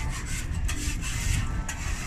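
A metal spatula scrapes across a hot griddle.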